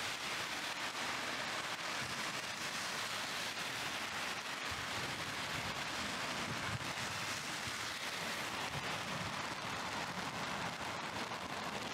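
Car tyres hiss past on a wet road.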